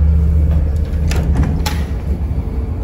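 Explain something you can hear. A door knocks and rattles as it opens.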